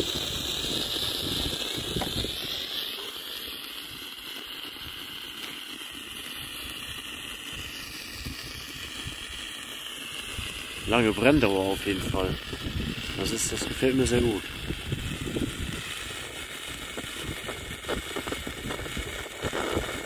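A road flare hisses and sputters steadily as it burns.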